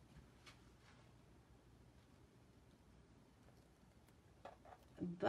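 Fingers peel and rustle a sheet of plastic wrap off wet paint.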